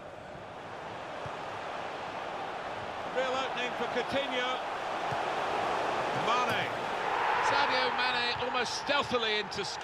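A stadium crowd roars louder and cheers as a goal is scored.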